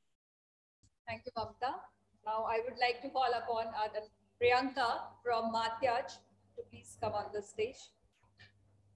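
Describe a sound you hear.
A woman speaks calmly and clearly into a microphone, heard through an online call.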